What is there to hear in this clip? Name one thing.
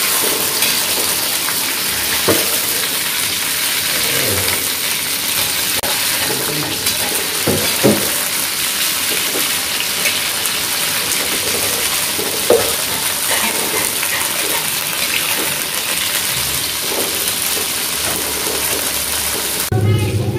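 A metal spatula scrapes and clinks against a metal wok.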